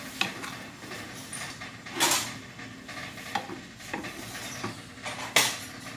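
A wooden spatula stirs soup and scrapes against the pan.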